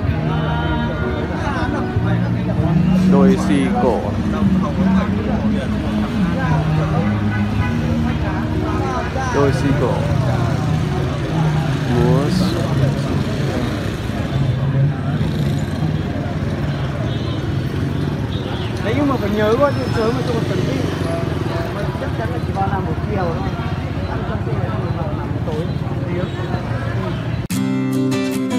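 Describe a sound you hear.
People chatter nearby in a busy street.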